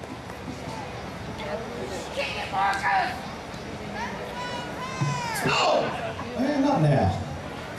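A man speaks loudly through loudspeakers outdoors.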